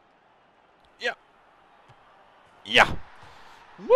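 A football is kicked hard with a thump.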